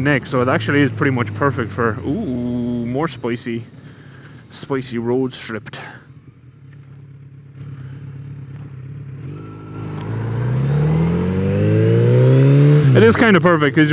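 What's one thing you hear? A man speaks calmly and close up through a helmet microphone.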